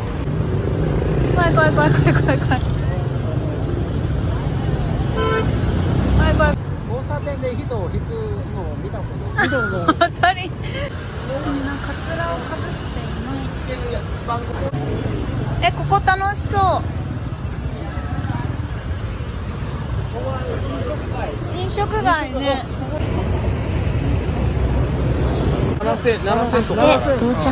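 A young woman speaks softly and with animation, close by.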